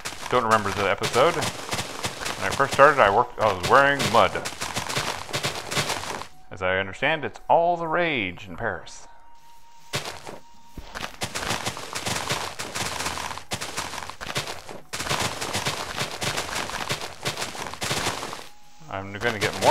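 Grass and dirt crunch in quick, repeated crackles as they are broken.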